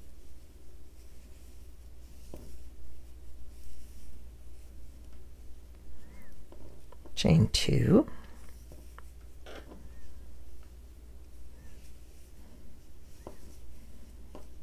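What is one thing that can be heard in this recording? A crochet hook softly rustles and taps through yarn.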